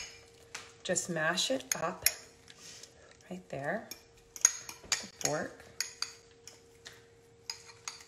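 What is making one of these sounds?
A fork clinks and scrapes against a bowl.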